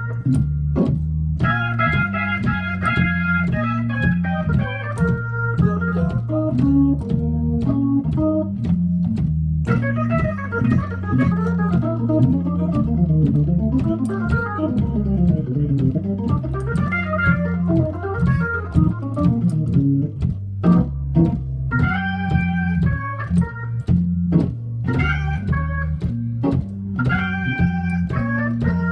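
An organ plays a lively tune with chords and a rhythmic bass line.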